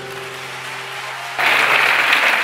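A guitar plays a note that rings out.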